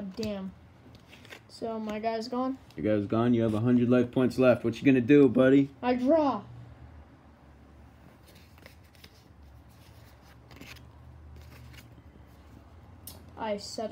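Playing cards rustle and tap softly as a hand picks them up.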